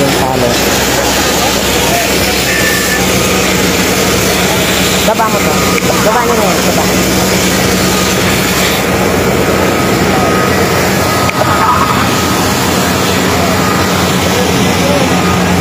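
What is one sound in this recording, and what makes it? Water hisses from a fire hose as it sprays onto a burnt building.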